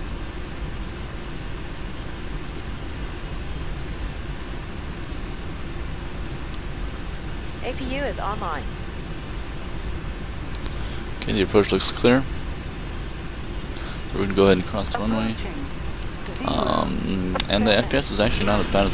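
A jet engine hums steadily at idle.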